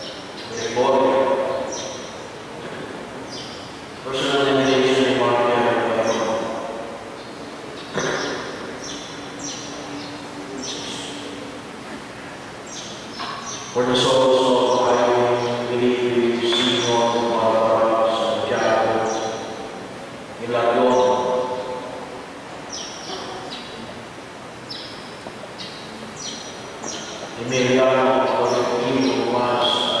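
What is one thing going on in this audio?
A group of men and women sing together slowly, in an echoing hall.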